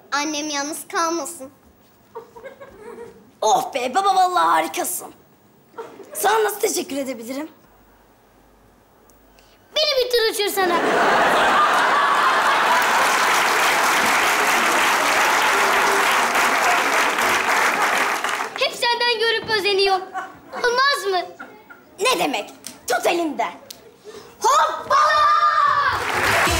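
A young girl speaks with animation.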